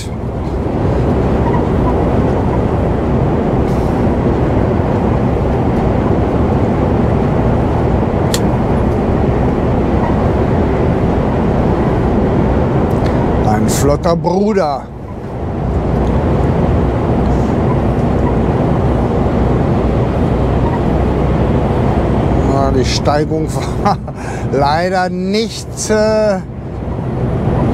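Tyres rumble on a motorway.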